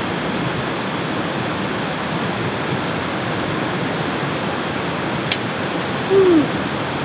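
A knife slices through cooked meat and taps a wooden board.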